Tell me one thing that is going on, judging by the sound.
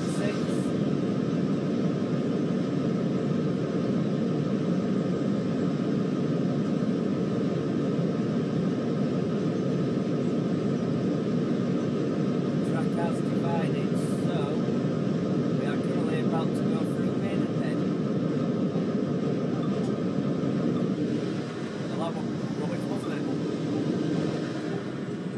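A train rumbles steadily along the track, heard through a loudspeaker.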